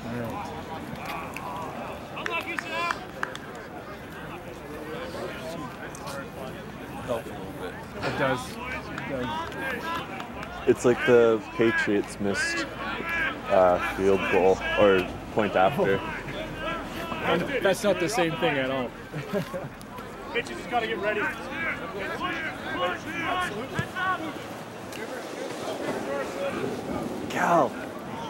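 Men talk and call out nearby outdoors, close to the microphone.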